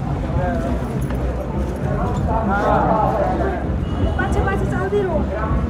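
A crowd of men and women talks and calls out all around, close by, outdoors.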